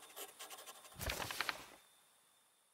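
A heavy book's cover thumps open.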